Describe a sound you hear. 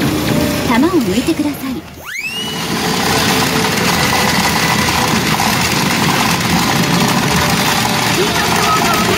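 A pachinko machine plays loud electronic sound effects and music.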